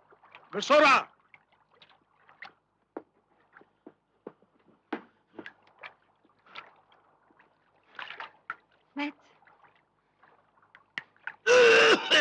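A man cries out loudly in pain.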